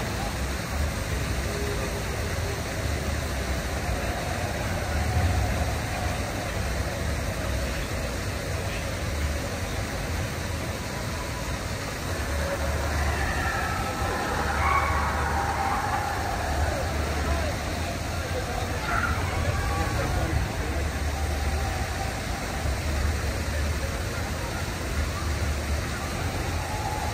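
Water laps and splashes gently nearby.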